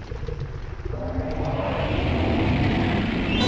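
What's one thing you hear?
A huge monster roars loudly.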